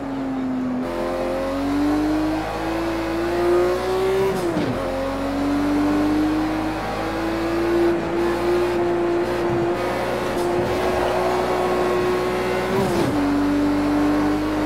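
A car engine roars steadily, its pitch rising as it revs and dropping sharply at each gear change.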